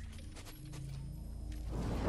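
A wind chime tinkles softly.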